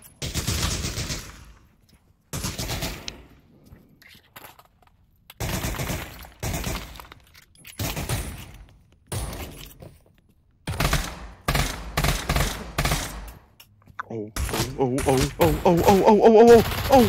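A pistol fires loud shots in quick bursts, each with a ringing echo.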